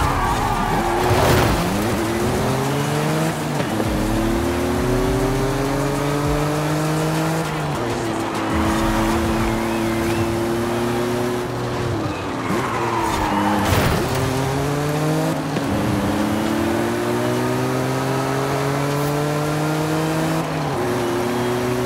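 A sports car engine revs hard, rising in pitch through each gear and dropping sharply at every shift.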